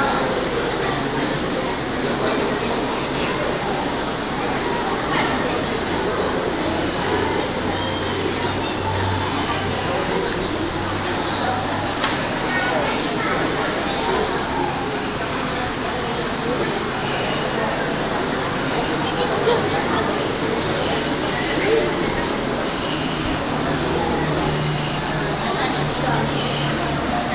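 A crowd of women chatter softly in a room with some echo.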